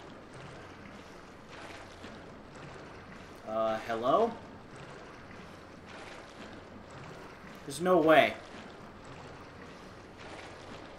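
Footsteps splash slowly through shallow water.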